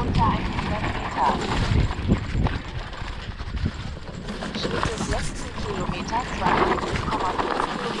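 Tall grass brushes against an electric mountain bike.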